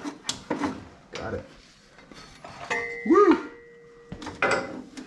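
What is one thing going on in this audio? Metal tools clink and knock close by.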